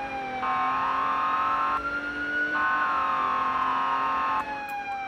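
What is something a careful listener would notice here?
A police car siren wails, rising and falling.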